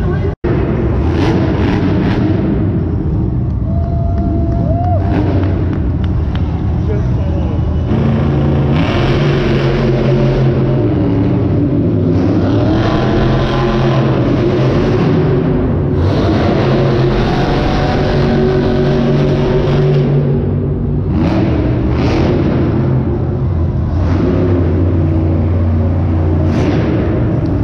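A large crowd cheers and murmurs.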